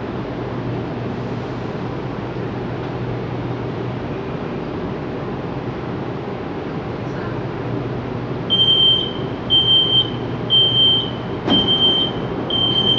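A train hums steadily while standing still.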